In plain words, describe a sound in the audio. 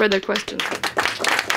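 A woman speaks into a microphone to an audience.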